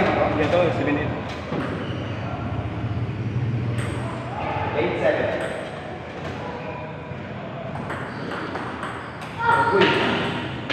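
Young boys talk and call out nearby.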